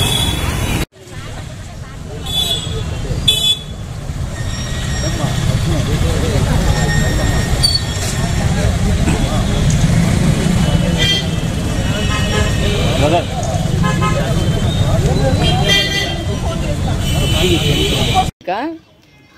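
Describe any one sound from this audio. A crowd of men and women talk outdoors.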